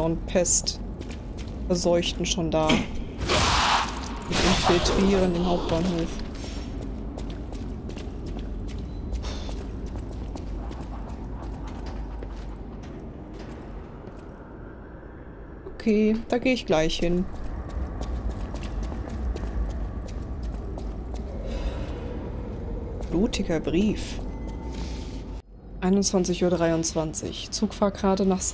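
A young woman talks casually, close to a microphone.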